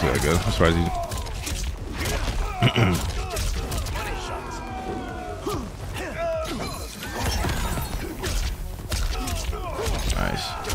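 Punches and kicks land with sharp thuds in a fighting game.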